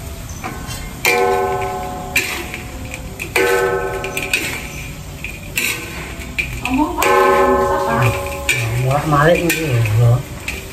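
A metal spatula scrapes and clatters in a wok.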